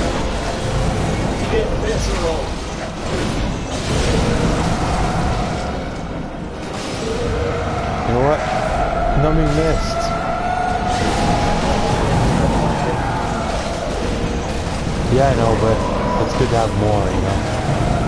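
Bursts of flame roar and crackle.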